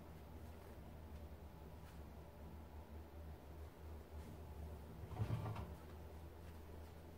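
Fabric rustles softly as laundry is pushed into a washing machine drum.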